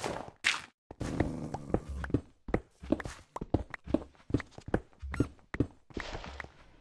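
A pickaxe chips repeatedly at stone.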